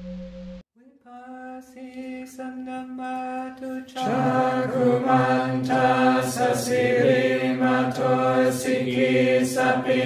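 A group of men chant together in low, steady voices.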